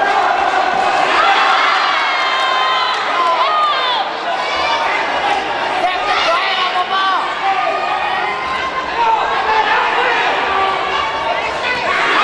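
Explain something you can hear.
Whistles and high shrill shouts ring out from the crowd.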